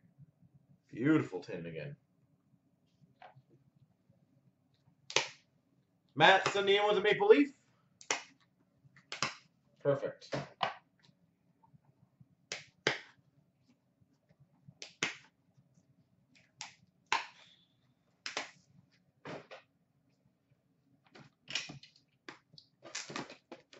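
Card packs knock and rustle as hands handle them.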